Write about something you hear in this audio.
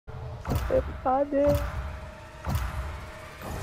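A video game sounds a sharp tick once each second as a countdown.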